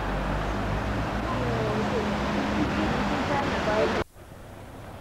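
A car drives past along a street.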